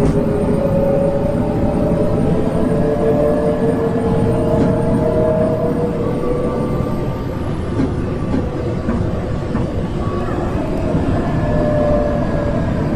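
A bus engine hums steadily while driving along a road.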